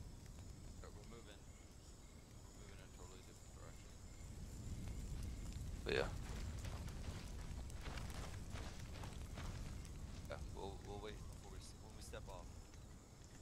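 Flames crackle and roar from a burning wreck.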